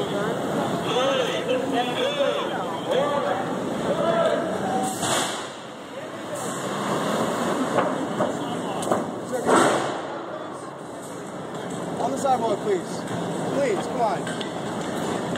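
People talk nearby in a crowd outdoors.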